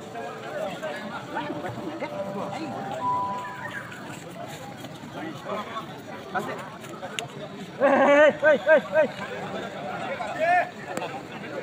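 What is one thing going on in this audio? A crowd of people chatter outdoors nearby and far off.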